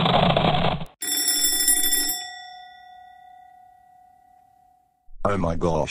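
An alarm clock rings sharply, then its tone slowly fades.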